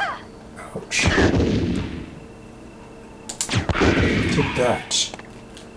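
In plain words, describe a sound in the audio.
A gun fires loud shots that echo.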